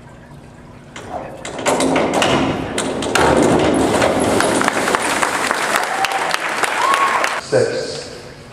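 A crowd cheers and applauds loudly in a large echoing hall.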